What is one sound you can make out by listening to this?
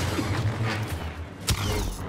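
Lightsaber blades clash with sharp crackles.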